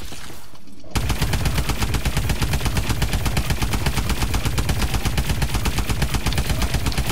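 A rapid-fire gun shoots in a fast, steady stream of shots.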